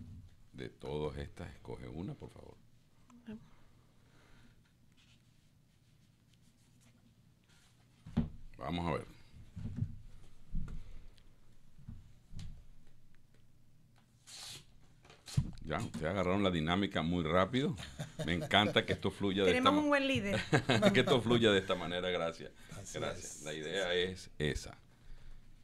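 A man speaks into a microphone in a calm, conversational way.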